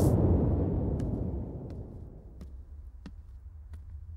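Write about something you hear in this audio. Bare feet step softly on a wooden floor.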